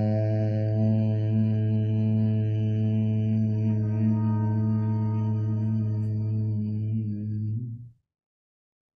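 A man chants a long, steady hum that fades out.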